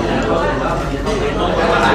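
Chopsticks clink against a plate.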